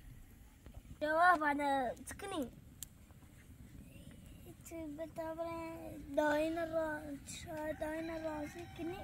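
A second young boy answers close by.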